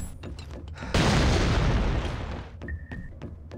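A smoke grenade hisses loudly.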